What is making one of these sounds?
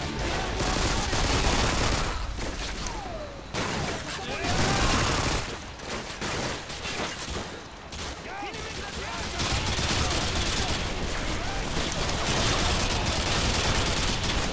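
Gunfire rattles in rapid, loud bursts.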